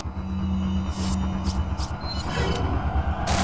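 Menu selection beeps click briefly.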